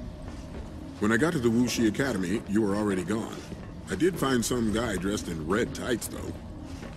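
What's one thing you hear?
A man speaks calmly in a deep voice.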